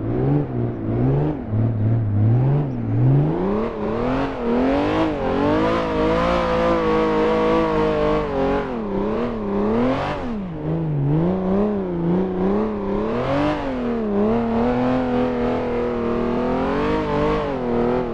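A car engine revs loudly, its pitch rising and falling as gears change.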